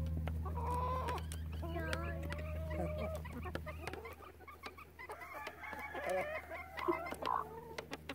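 Hens peck quickly, tapping at a feeder.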